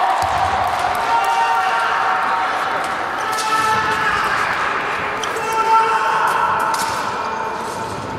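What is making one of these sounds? A man shouts in celebration in an echoing hall.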